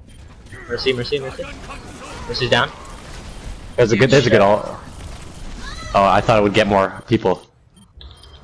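Gunfire and blasts crackle from a fast-paced game battle.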